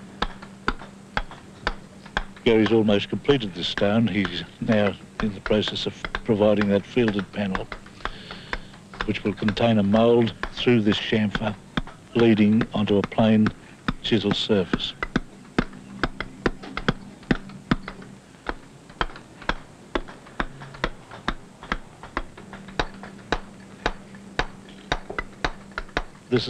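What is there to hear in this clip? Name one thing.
A mallet taps a steel chisel into sandstone in rapid, regular blows.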